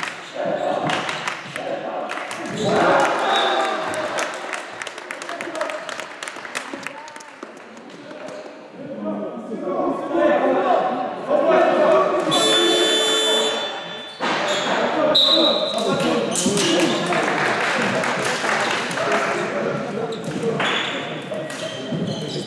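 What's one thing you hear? Basketball shoes squeak on a gym floor.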